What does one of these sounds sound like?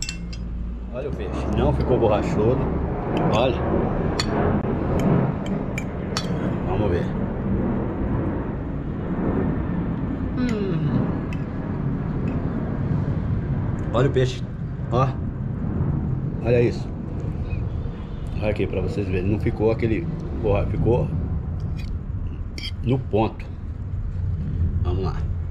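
An older man talks calmly close to the microphone.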